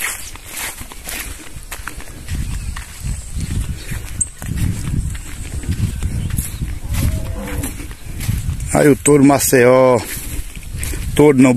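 A man's feet shuffle and scrape on dry, stubbly ground.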